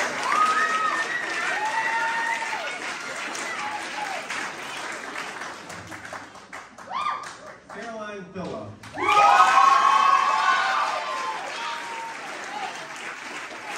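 Young people cheer and whoop loudly.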